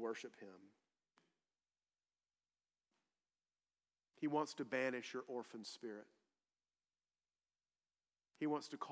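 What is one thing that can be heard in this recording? A man speaks calmly through a microphone, with long pauses.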